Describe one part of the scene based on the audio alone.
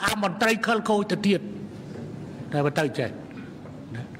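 A man speaks forcefully into a microphone.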